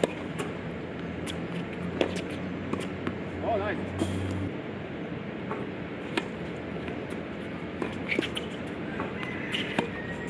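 Tennis rackets strike a ball back and forth in a steady rally.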